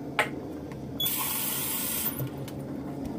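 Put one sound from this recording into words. Water runs from a tap into a cup.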